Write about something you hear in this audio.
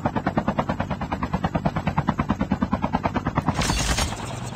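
A motorbike engine roars.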